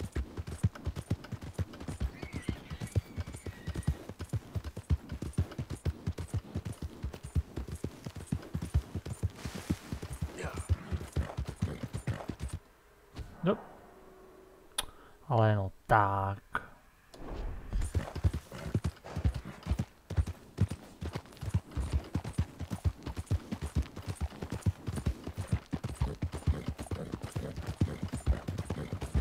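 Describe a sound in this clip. Horse hooves clop steadily on a muddy dirt track.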